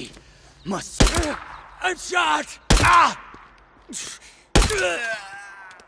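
A pistol fires several loud, sharp shots.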